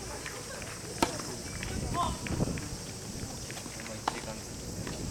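A tennis ball is struck sharply with a racket outdoors.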